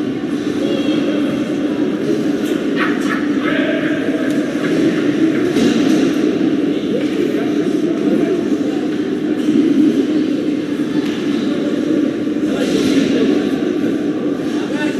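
Spectators murmur in a large echoing arena.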